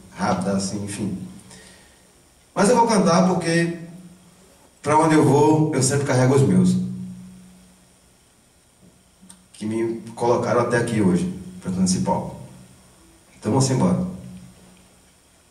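A man speaks with animation into a microphone in an echoing room.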